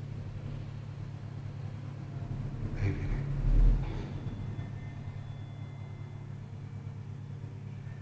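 An elevator motor hums steadily.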